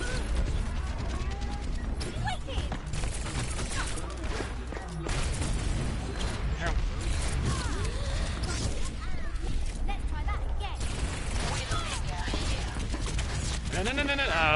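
Rapid pistol shots fire in quick bursts.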